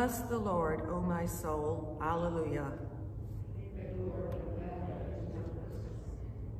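An older woman reads aloud calmly into a microphone.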